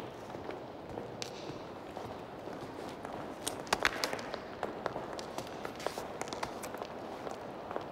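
High heels click on a tiled floor in an echoing hall.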